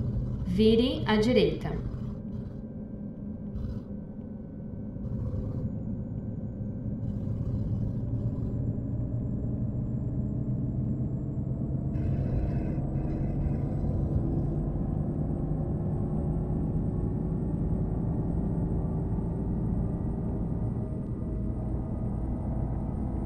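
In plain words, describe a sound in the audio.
A bus engine drones steadily and slowly rises in pitch as the bus speeds up.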